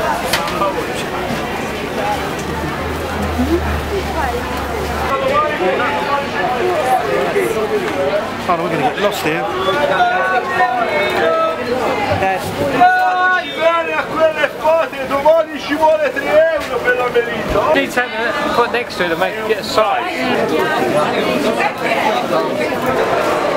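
A crowd of shoppers chatters all around.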